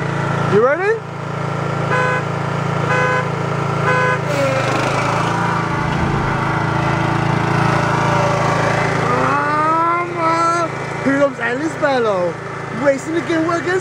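A riding lawn mower engine drones close by.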